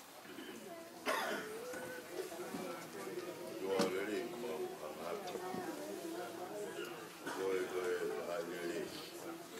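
Several adult men and women talk at once in a room.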